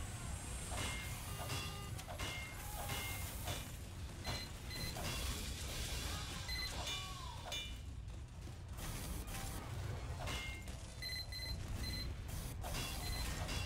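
A wrench clangs repeatedly against metal machinery.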